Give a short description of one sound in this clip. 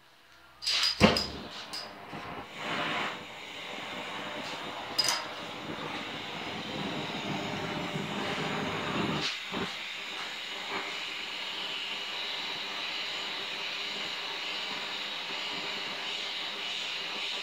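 A gas torch hisses and roars steadily.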